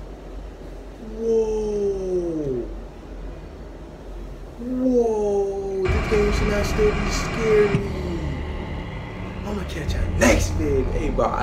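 A young man exclaims and talks with animation close to a microphone.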